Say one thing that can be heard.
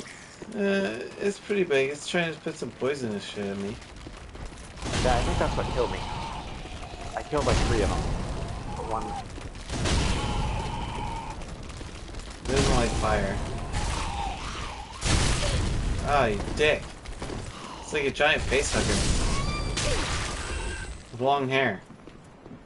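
A man talks excitedly into a close microphone.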